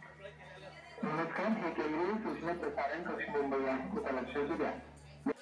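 Several men talk loudly over one another nearby.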